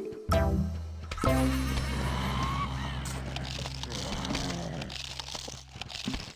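Cartoon game plants fire with soft popping sounds.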